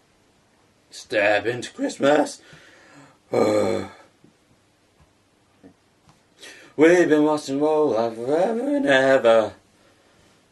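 A young man speaks casually close by, in short bursts with pauses.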